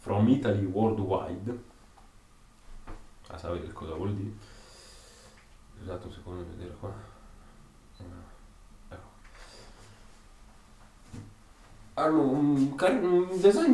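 A young man talks close by, in bursts with pauses.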